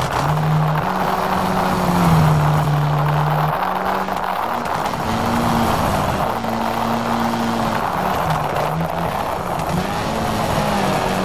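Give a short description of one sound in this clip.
Tyres crunch and spray over loose gravel.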